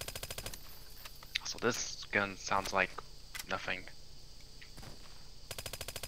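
A rifle's magazine is pulled out and clicked back in.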